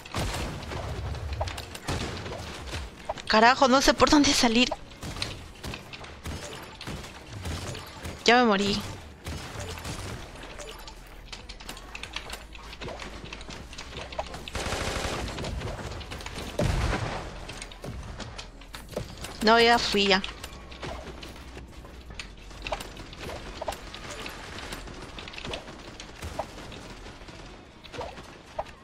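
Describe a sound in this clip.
A young woman talks into a microphone with animation.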